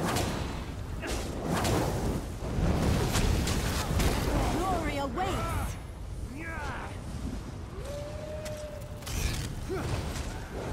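Weapons clash and strike in a battle.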